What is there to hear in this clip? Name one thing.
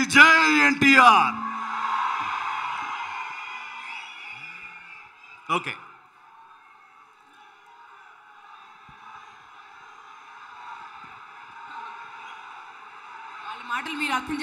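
A large crowd cheers and applauds in a big hall.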